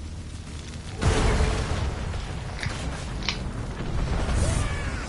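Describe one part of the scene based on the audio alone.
A jet of fire bursts out with a loud whoosh.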